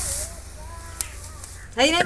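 Dry straw rustles under a hand.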